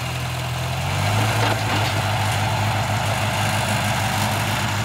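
A tractor engine revs up as the tractor drives off.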